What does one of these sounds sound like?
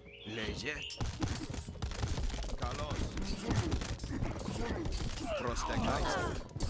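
Soldiers' weapons clash and clatter in a skirmish.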